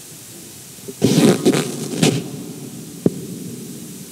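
Something knocks and rustles against a microphone with loud thumps.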